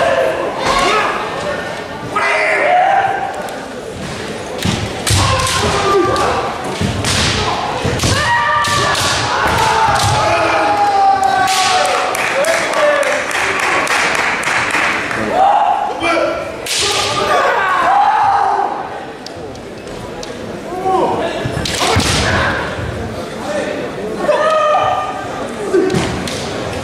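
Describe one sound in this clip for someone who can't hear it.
Fighters shout loudly in a large echoing hall.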